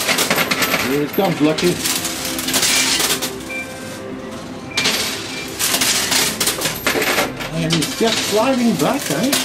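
Coins clatter and clink.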